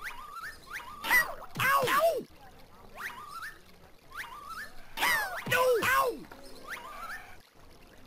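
Cartoon blows land with loud smacks and thuds.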